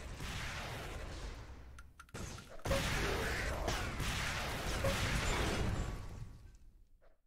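A game energy gun fires in rapid bursts.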